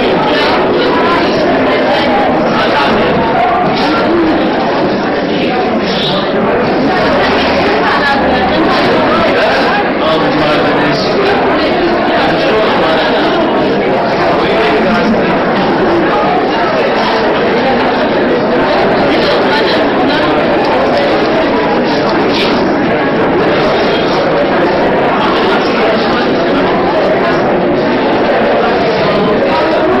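A large crowd of men and women murmurs and chats steadily.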